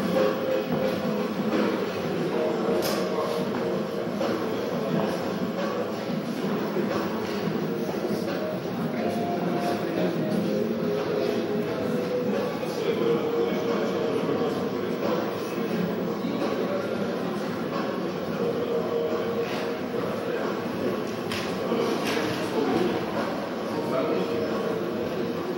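A crowd of people murmurs and chatters in a room.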